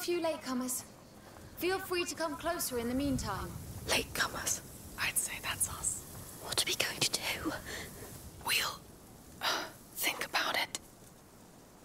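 Dry grass rustles as people crawl through it.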